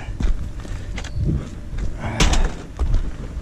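A plastic bottle crunches and crackles as it is stepped on.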